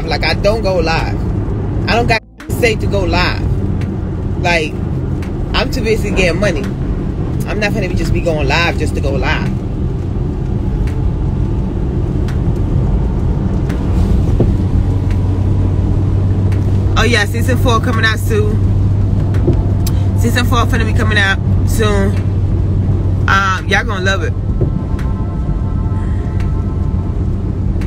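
A car hums steadily as it drives along a road.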